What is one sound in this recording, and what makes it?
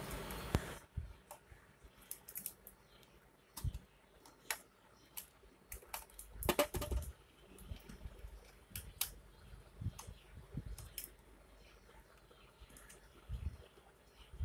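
A plug clicks and taps as it is handled close by.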